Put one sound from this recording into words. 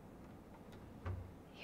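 A cabinet door opens with a soft knock.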